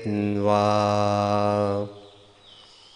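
A man chants a long, steady held note into a microphone, then falls silent.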